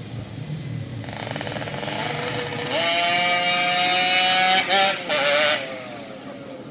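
A two-stroke motorcycle races past at full throttle.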